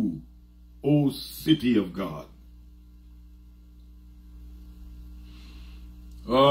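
A man speaks with emphasis into a close microphone, pausing between phrases.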